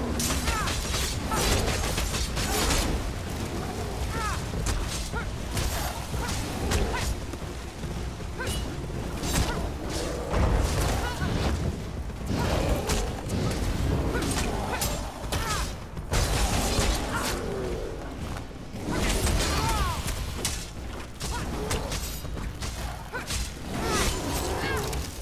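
Monsters roar and growl.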